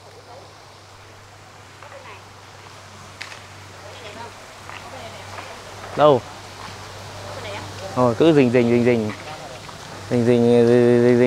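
A water wheel turns and splashes water into a pond.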